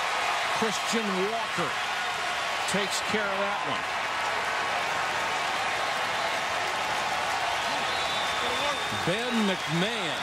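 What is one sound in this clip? A large crowd cheers and claps in a big open stadium.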